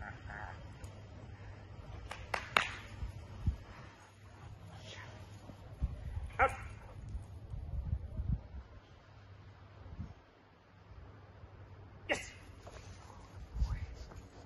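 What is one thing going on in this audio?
A man nearby gives short commands to a dog.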